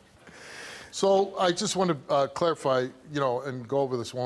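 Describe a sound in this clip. A man speaks loudly and firmly to an audience.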